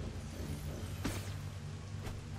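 A sharp magical whoosh sounds briefly.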